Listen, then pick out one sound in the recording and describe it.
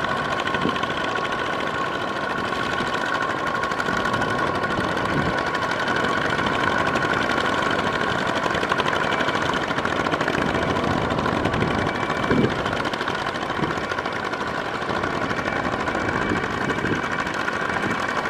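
A small diesel engine chugs steadily close by.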